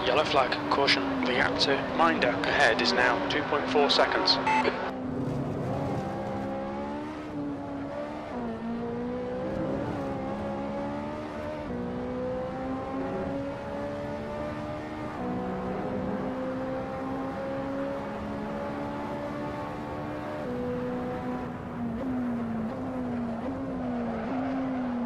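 A racing car engine roars steadily and rises in pitch as it accelerates through the gears.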